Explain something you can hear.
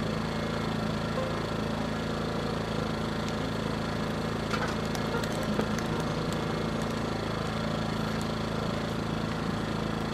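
A fire roars and crackles inside a metal barrel outdoors.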